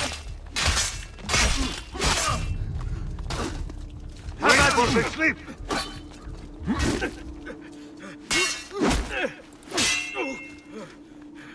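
Steel swords clash and ring in a close fight.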